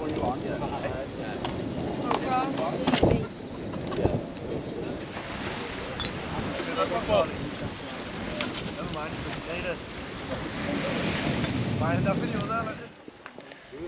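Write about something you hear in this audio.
A man talks with animation close by, outdoors in wind.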